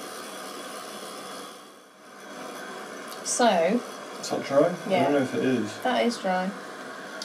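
A heat gun blows with a steady whirring hiss.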